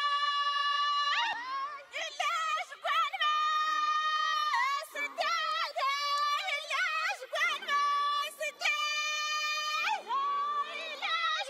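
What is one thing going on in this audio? Women sing together in high, sustained voices.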